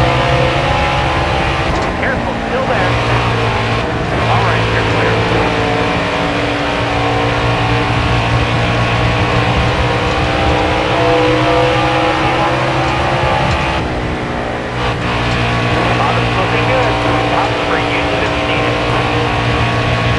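A race car engine roars loudly at high revs.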